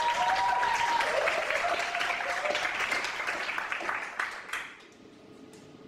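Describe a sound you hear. An audience applauds loudly, then the clapping dies away.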